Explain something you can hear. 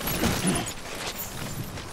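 Footsteps crunch over rocks.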